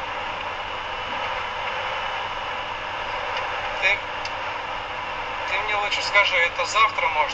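A car drives steadily on a road with a low rumble of tyres.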